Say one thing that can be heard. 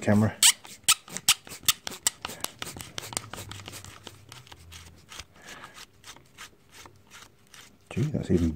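A screwdriver clicks and scrapes against a metal screw.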